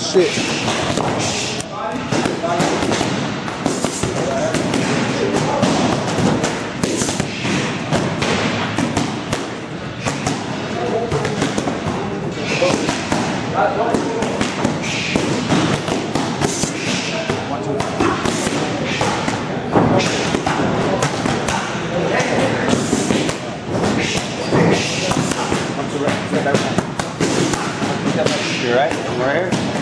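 Boxing gloves smack against punch mitts in quick bursts.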